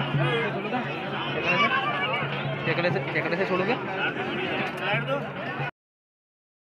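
A crowd of men chatter loudly nearby, outdoors.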